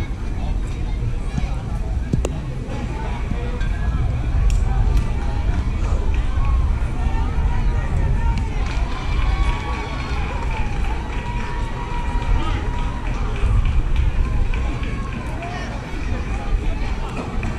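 Young players call out across an open field in the distance.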